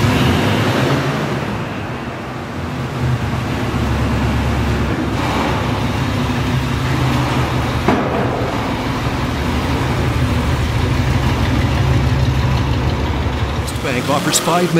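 A truck engine rumbles steadily as it idles and drives slowly away.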